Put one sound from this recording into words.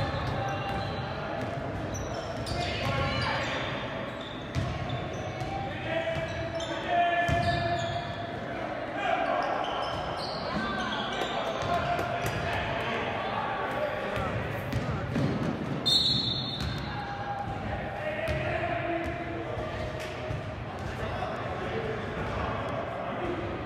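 Young men call out to each other in a large echoing gym.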